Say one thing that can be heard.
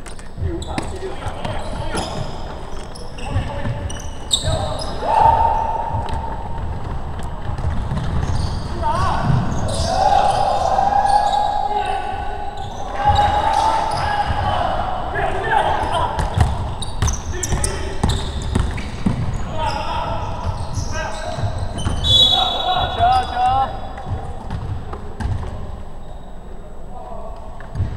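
Young men shout to each other in an echoing gym.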